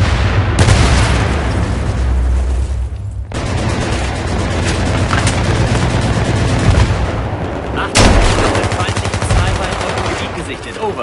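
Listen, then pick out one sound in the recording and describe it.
Gunfire and explosions rumble loudly and steadily.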